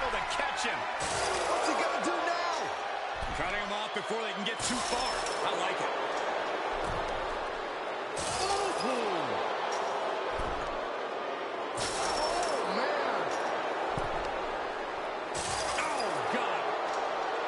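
A steel cage rattles as wrestlers struggle against it.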